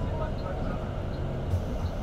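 A coach passes close by.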